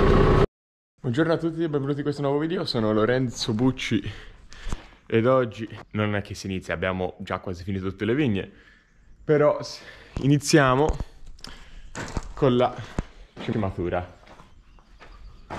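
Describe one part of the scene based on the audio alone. A young man talks with animation, close to the microphone.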